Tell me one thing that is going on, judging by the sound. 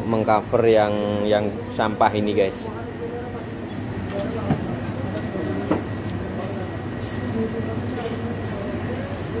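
Dry stalks rustle as a hand sorts through them.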